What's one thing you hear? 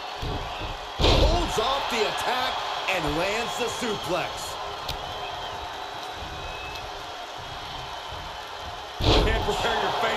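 A body slams hard onto a wrestling mat with a thud.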